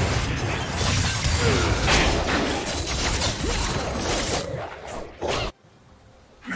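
Magic blasts crackle and whoosh during a fast fight.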